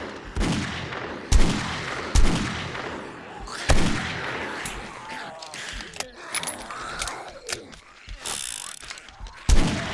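A rifle fires single shots, spaced a second or more apart.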